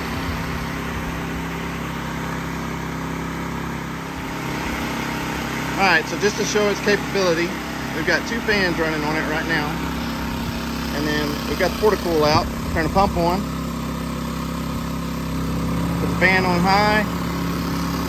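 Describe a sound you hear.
A small generator engine hums steadily.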